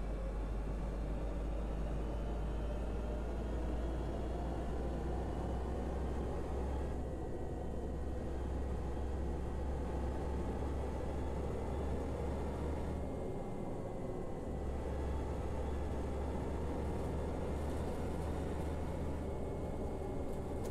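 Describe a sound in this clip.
A bus engine hums steadily while driving, rising and falling with speed.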